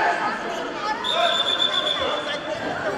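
A referee blows a whistle briefly.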